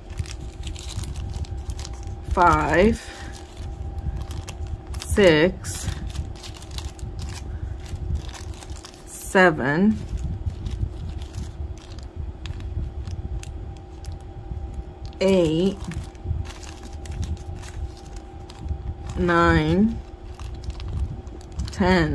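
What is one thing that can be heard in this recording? Plastic bags crinkle and rustle.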